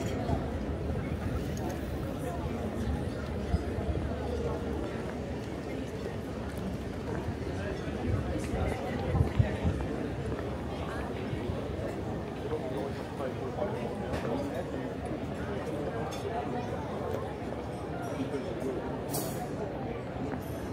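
A busy outdoor street murmurs with city noise.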